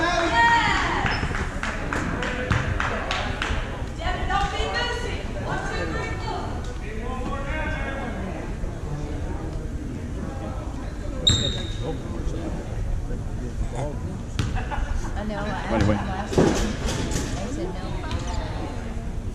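Voices of a crowd chatter and call out in a large echoing gym.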